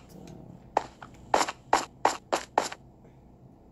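Stone blocks crunch in short, sharp bursts as they are dug out.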